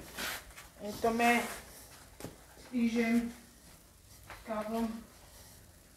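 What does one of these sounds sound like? A woman speaks in short bursts nearby.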